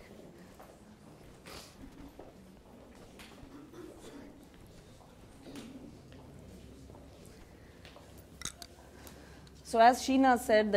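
A crowd murmurs quietly in a room.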